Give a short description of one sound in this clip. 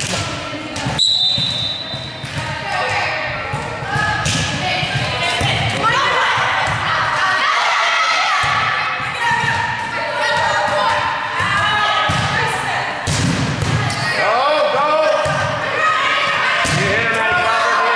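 A volleyball is hit with sharp slaps.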